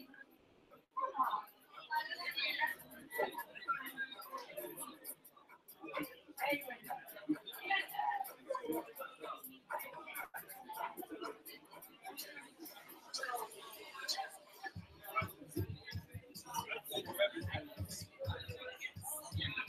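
A crowd of men and women chat and murmur nearby.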